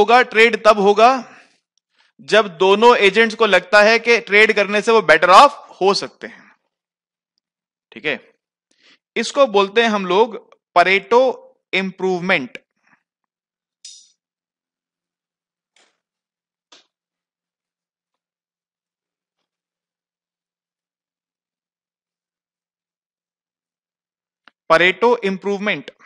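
A man lectures calmly through a headset microphone, pausing now and then.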